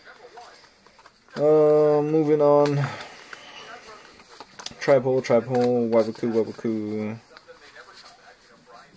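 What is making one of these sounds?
Playing cards slide and rustle softly against each other as they are shuffled.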